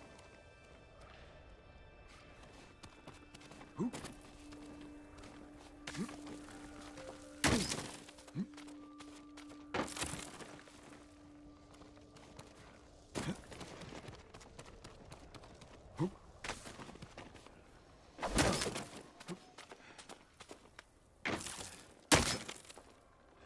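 A climber scrambles up rock with scraping thuds.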